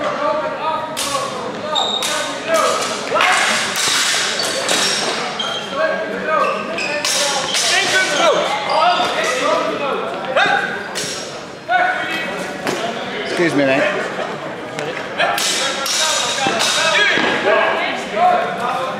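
Steel swords clash and clatter in a large echoing hall.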